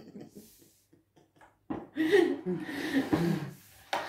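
A woman laughs.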